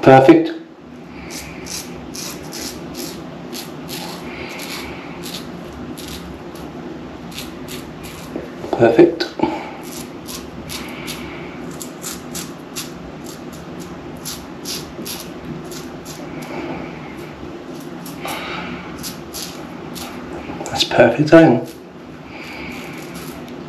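A razor scrapes over stubble in short, rapid strokes.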